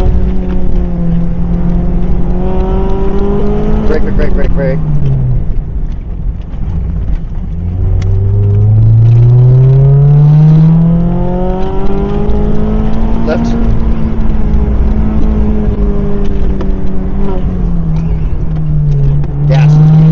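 A car engine roars loudly, revving up and down.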